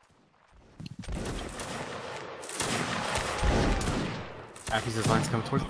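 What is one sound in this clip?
A volley of muskets fires with loud cracking bangs.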